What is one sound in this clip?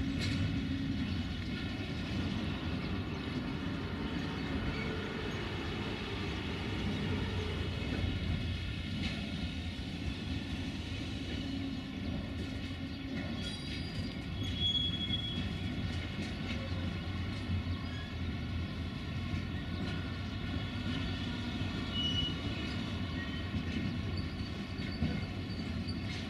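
A freight train rumbles steadily along the tracks in the distance.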